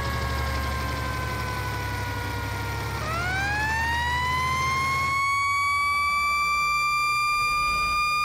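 A siren wails, dropping slowly and then rising again to a steady high tone.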